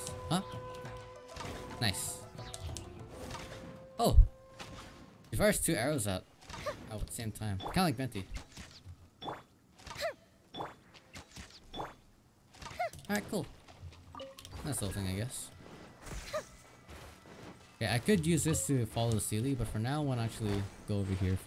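Magical attacks whoosh, crackle and chime in quick bursts.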